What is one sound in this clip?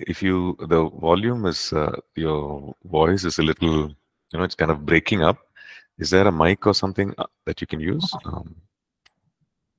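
A man talks calmly over an online call.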